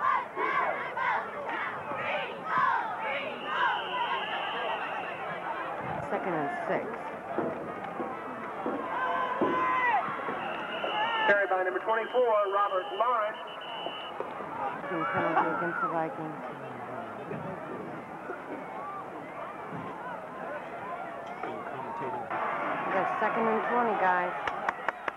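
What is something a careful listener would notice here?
Young men shout and cheer loudly nearby.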